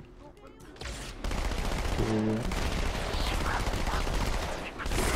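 A rifle fires rapid, steady bursts.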